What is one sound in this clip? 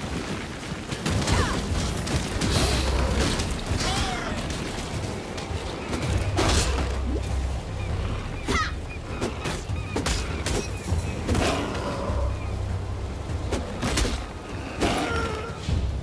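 Sharp fighting blows and spell impacts clash repeatedly.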